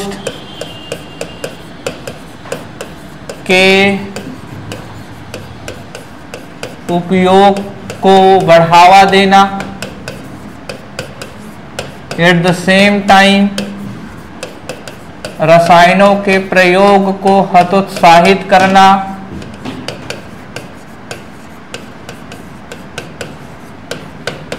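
A pen taps and scratches on a writing board.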